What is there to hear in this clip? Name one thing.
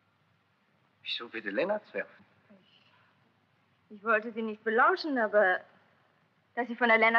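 A young woman speaks with feeling, in short phrases.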